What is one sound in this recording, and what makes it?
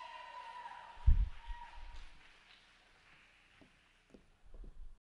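Feet thump on a stage floor.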